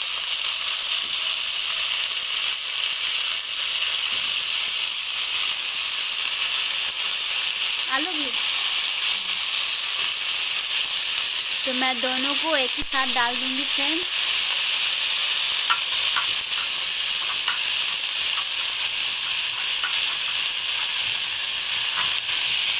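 Vegetables sizzle steadily in a hot pan.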